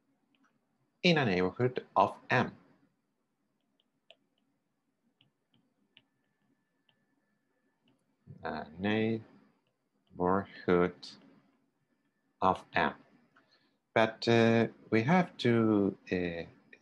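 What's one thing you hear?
A man speaks calmly in short phrases, close to a microphone, with pauses between them.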